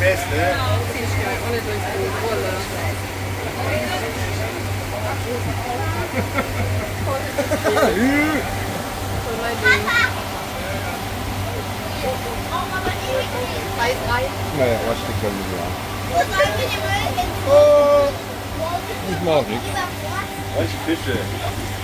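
A boat engine drones steadily with a low hum.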